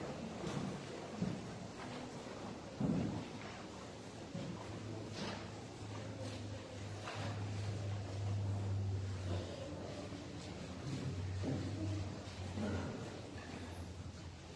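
A man speaks quietly at a distance, echoing in a large hall.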